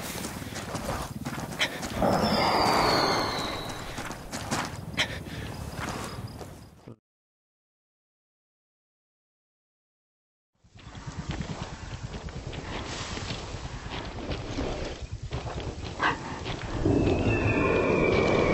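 Boots crunch on rocky ground.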